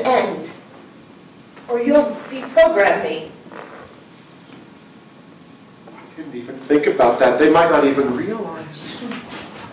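A man speaks with feeling on a stage, in a slightly echoing room.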